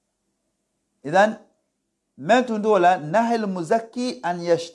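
A man speaks close into a microphone, reciting in a measured, chanting voice.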